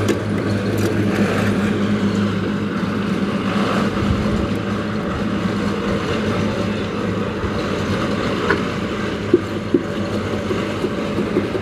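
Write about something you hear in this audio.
Wet concrete slides and slaps from a metal pan into a mould.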